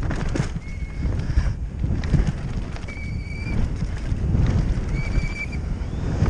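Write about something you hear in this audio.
Bicycle tyres rumble and skid over dry dirt.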